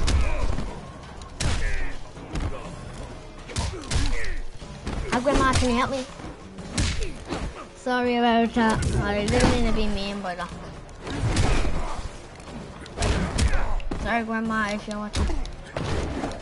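Heavy punches and kicks thud and smack again and again.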